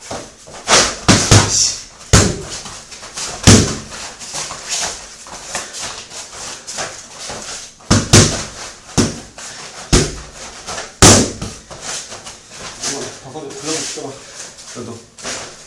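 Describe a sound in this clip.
Bare feet thump and shuffle on a padded mat.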